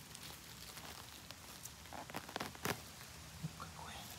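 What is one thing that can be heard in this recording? A mushroom is twisted out of soft moss with a faint rustle.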